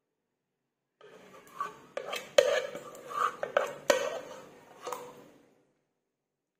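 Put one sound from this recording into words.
A metal pot scrapes against the rim of a mould.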